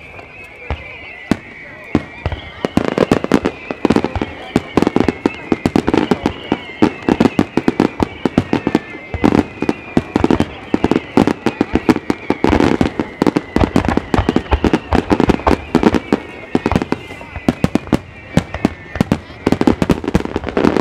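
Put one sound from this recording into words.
Firework shells whistle as they fly up.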